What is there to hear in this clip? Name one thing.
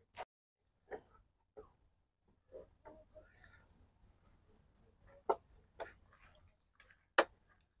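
A spoon scrapes and clinks against a metal pan.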